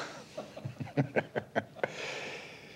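A man laughs softly close by.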